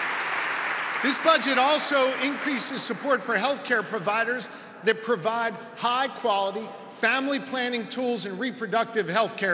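A middle-aged man speaks forcefully into a microphone over loudspeakers.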